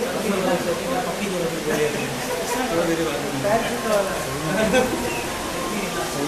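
Men talk close by.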